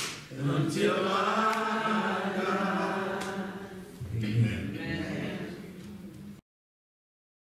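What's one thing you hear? Several men sing together through a microphone.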